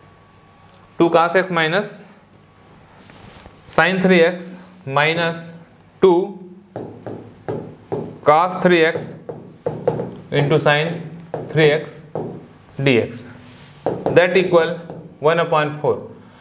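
A man speaks steadily, explaining, close to a microphone.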